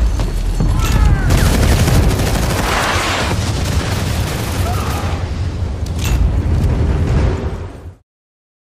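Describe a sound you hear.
A pistol fires in rapid shots.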